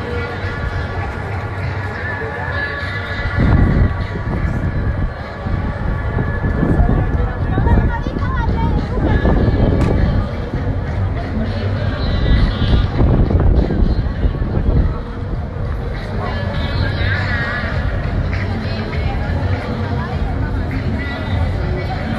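A large crowd chatters and cheers outdoors.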